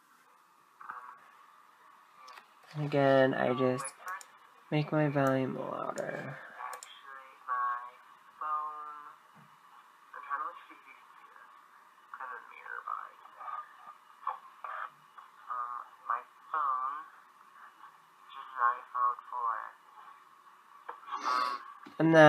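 A teenage boy talks, heard through small tinny laptop speakers.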